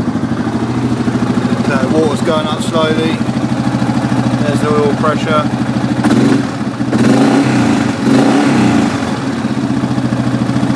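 A diesel engine idles with a steady, rattling rumble close by.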